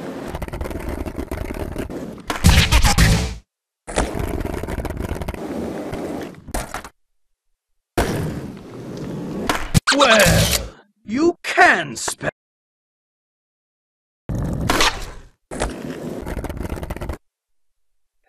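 Skateboard wheels roll and rumble over hard pavement.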